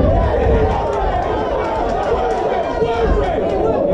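Punches thud against bodies.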